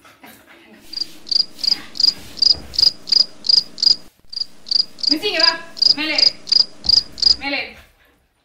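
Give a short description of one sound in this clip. A squeaky toy squeaks rapidly over and over.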